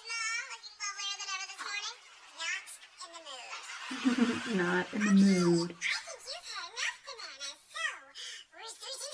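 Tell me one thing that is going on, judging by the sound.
A woman speaks with animation in a high, playful voice.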